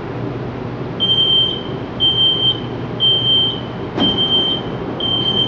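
A door warning signal beeps repeatedly at a high pitch.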